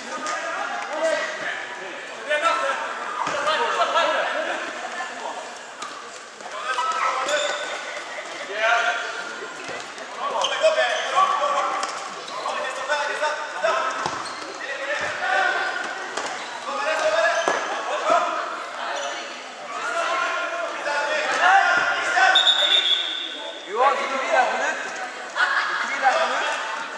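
Men shout and call out across the hall.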